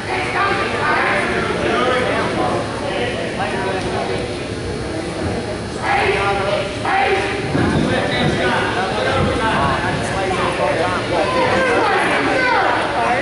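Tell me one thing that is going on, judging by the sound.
Wrestlers' feet thud and squeak on a mat.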